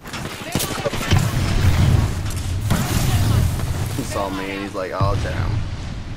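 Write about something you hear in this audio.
Gunfire bursts out in rapid, loud shots.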